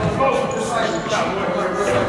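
A basketball thuds against a backboard and rim.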